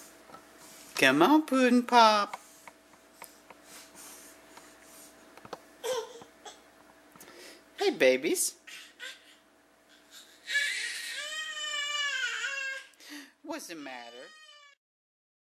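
A baby babbles and squeals loudly close by.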